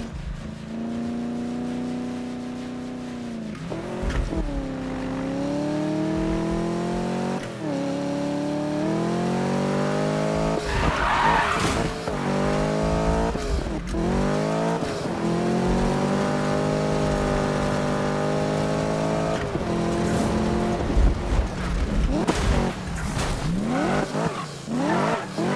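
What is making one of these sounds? A V8 muscle car engine revs hard, shifting up through the gears.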